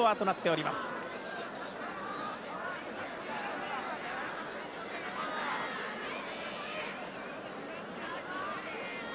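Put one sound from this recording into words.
A large crowd in an arena shouts and cheers throughout.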